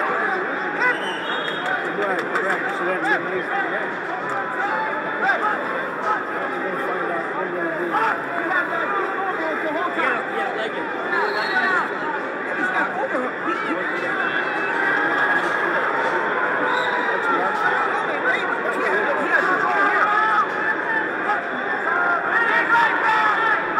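A large crowd murmurs and chatters in a big echoing arena.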